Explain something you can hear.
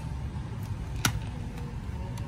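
A card payment terminal beeps once.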